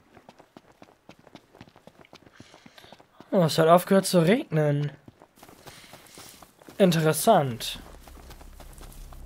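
Quick footsteps patter over grass and dirt.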